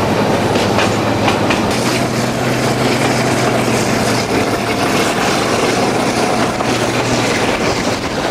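A diesel locomotive engine drones ahead, then fades.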